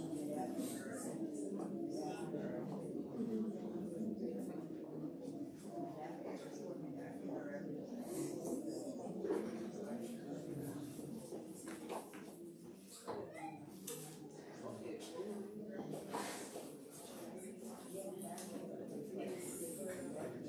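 A crowd of men and women chatters all around in a room with some echo.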